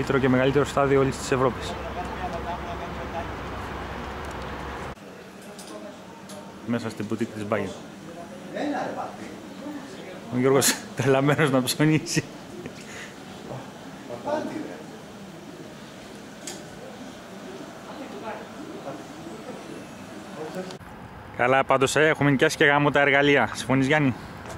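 A man talks close by.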